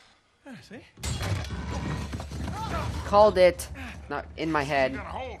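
A man speaks with a chuckle.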